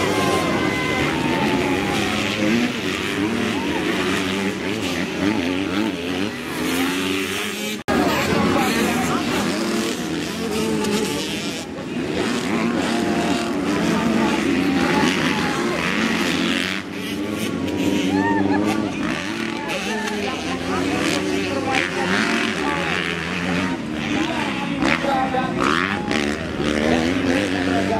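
Dirt bike engines rev and whine loudly, rising and falling in pitch.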